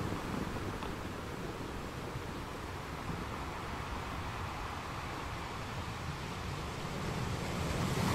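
Ocean waves break and rush steadily over rocks.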